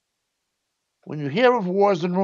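A middle-aged man speaks close to a microphone.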